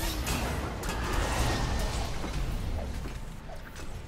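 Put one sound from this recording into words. Magical blasts whoosh and crackle in quick bursts.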